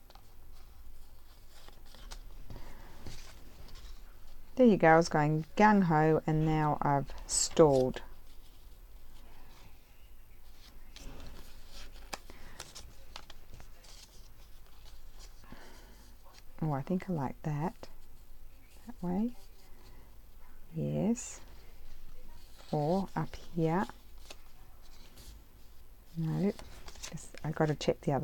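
Paper rustles and crinkles as hands fold and handle it.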